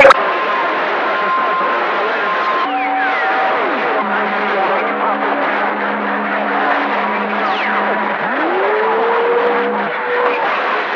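Whistling tones drift in and out on a shortwave radio.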